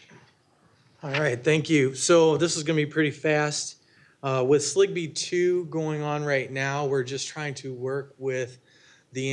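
A man speaks clearly and steadily into a microphone.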